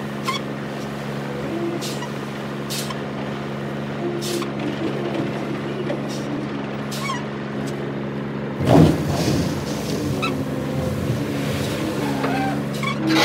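Gravel pours and rattles into a steel truck bed.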